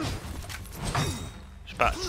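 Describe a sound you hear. A sword clangs against a metal shield.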